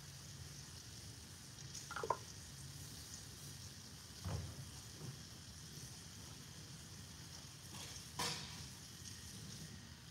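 Liquid pours from a jug into a pitcher.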